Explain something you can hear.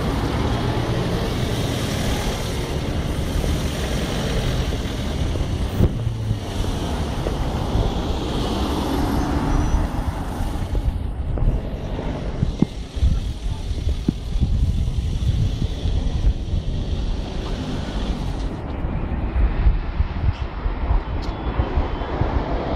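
Traffic hums steadily in the open air.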